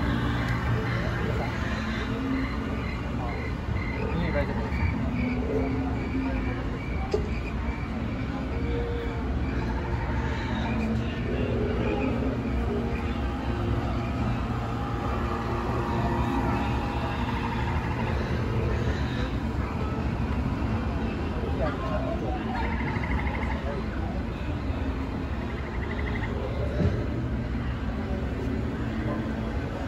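A crowd of people chatters loudly all around, close by.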